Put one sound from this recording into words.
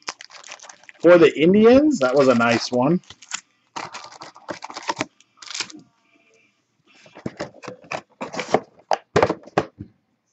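Cardboard and foil packs rustle and slide as they are pulled from a box.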